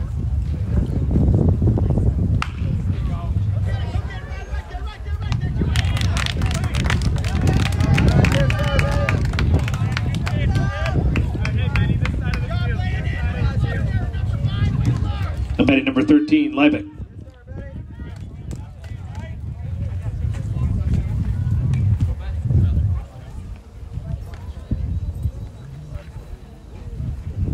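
Young men call out in the distance.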